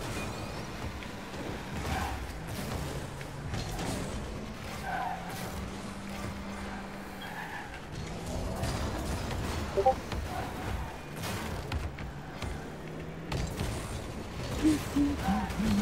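A ball thuds as a car hits it.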